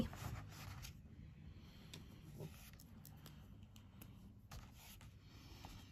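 A paper page turns.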